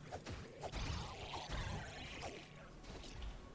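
Sharp electronic slashes and impacts ring out in quick bursts.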